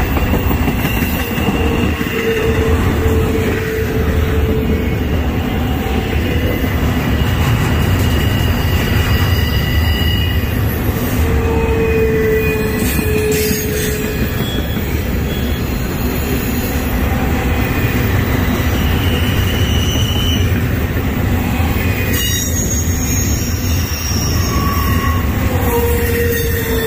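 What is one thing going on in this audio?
Steel wheels squeal on the rails now and then.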